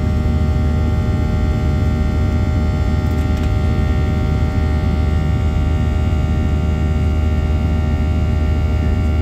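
Jet engines roar steadily with a deep rumble, heard from inside an airplane cabin.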